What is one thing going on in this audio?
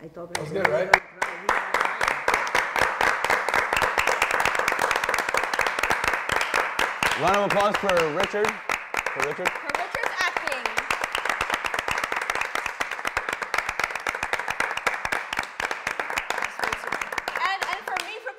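A small group claps their hands in steady, lively applause.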